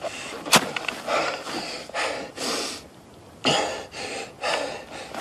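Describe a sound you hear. A young man speaks quietly.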